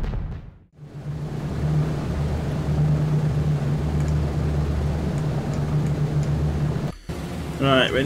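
Heavy aircraft engines drone steadily.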